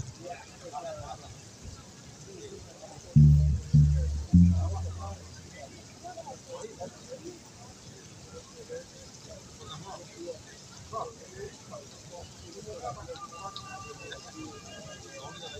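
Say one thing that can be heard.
Hand drums are tapped in a rhythm.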